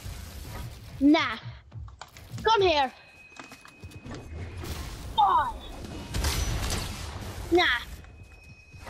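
Game building pieces snap into place with quick bright chiming tones.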